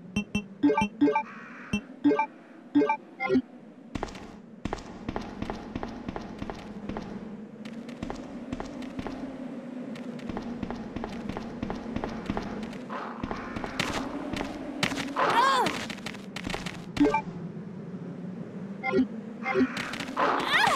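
Short electronic beeps chime in quick succession.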